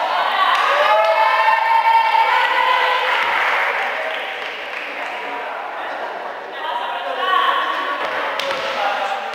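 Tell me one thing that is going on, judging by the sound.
Young women shout and cheer loudly in a large echoing hall.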